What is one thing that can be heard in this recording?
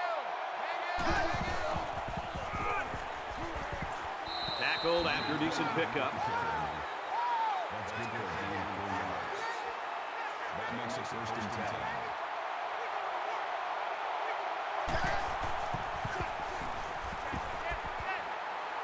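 Football players collide with dull thuds.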